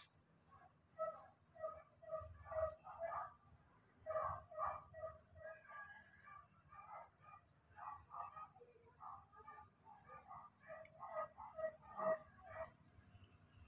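A small monkey gives soft, rapid squeaks over and over.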